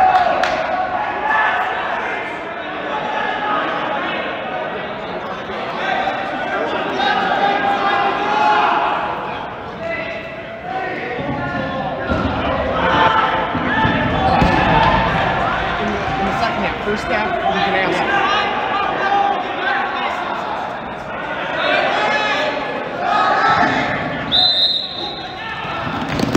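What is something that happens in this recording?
Young men talk and call out nearby, echoing in a large hall.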